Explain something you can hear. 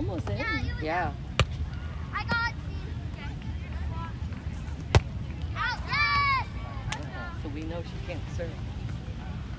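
Young girls call out to each other outdoors.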